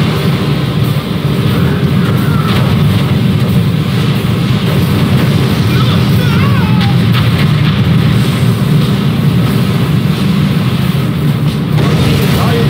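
Rockets whoosh through the air.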